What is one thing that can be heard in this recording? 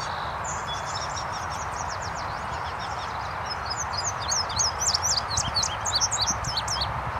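A small songbird sings quick, high chirping notes close by.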